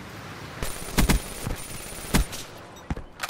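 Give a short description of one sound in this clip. A rifle fires a few sharp shots close by.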